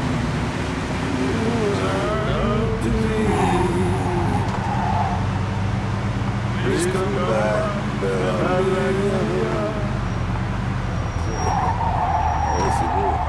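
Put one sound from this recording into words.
A car engine hums steadily as it drives along.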